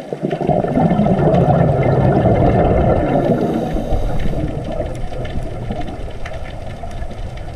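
Water rushes with a low, muffled murmur all around underwater.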